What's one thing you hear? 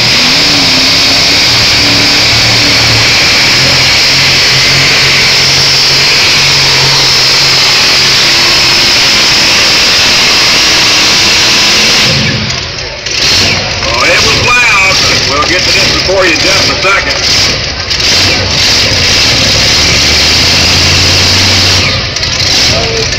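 A pulling tractor's engine roars loudly and harshly nearby.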